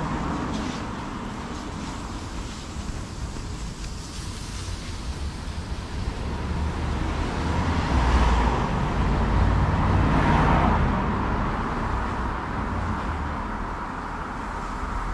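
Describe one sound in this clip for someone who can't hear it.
Wind rumbles and gusts outdoors.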